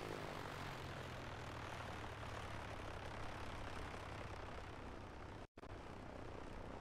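A single-engine piston light aircraft idles on the ground.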